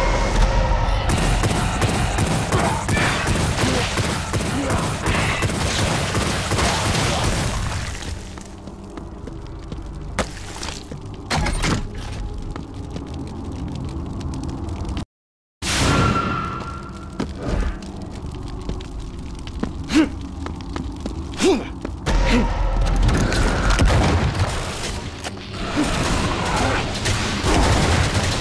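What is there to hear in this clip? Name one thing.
A shotgun fires repeatedly with loud booming blasts.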